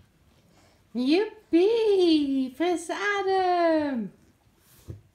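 A baby squeals and babbles loudly close by.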